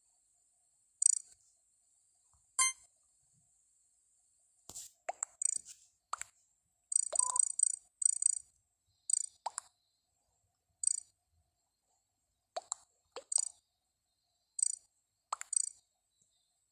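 Short electronic game chimes and blips sound again and again.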